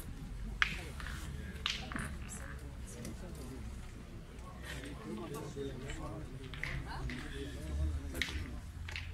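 Men talk quietly among themselves nearby.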